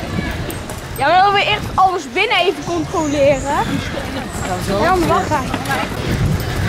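A young boy speaks excitedly close by.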